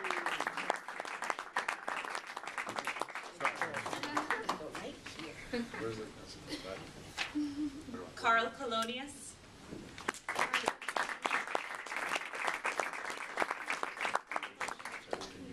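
A small group claps their hands in applause in a room.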